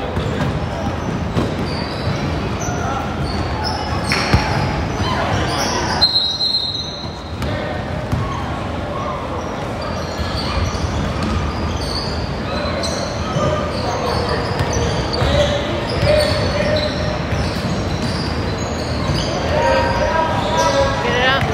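Children's voices chatter and call out in a large echoing gym.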